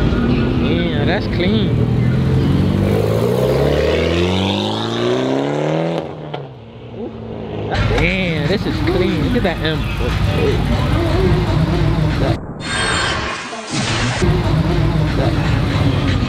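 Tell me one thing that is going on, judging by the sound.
Cars drive past slowly.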